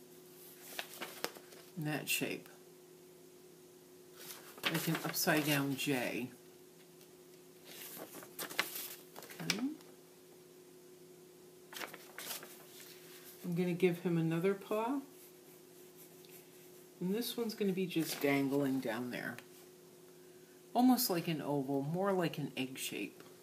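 Paper rustles and crackles.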